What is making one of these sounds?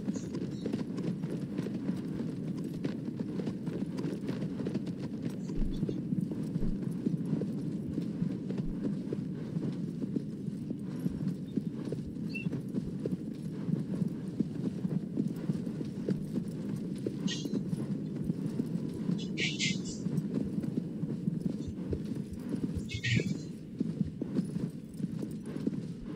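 A horse gallops, its hooves thudding fast on grass.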